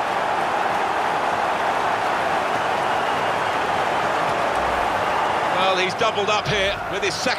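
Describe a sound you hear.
A large crowd roars and cheers steadily in a big stadium.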